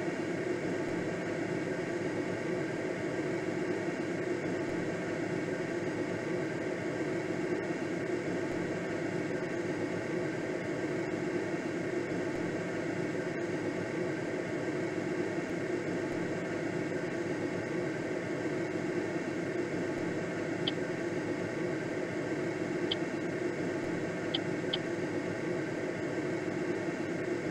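Air rushes steadily past a gliding aircraft.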